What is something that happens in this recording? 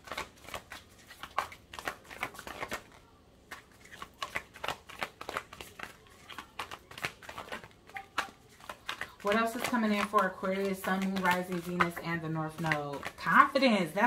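Playing cards riffle and slap together as they are shuffled by hand.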